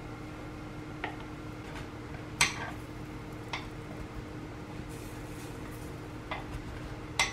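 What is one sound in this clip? Chopsticks tap and scrape against a metal pan.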